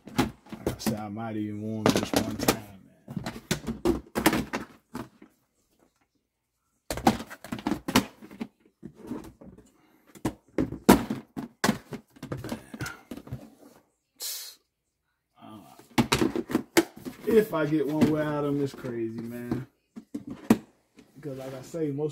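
Plastic boxes clatter and knock as they are handled.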